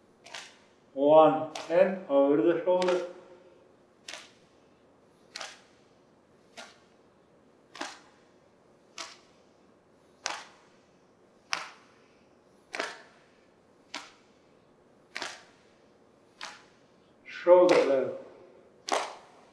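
A man speaks calmly through a microphone, giving instructions.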